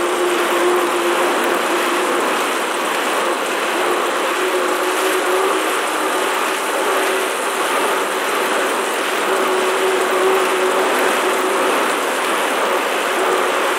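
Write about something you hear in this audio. A man breathes heavily close by.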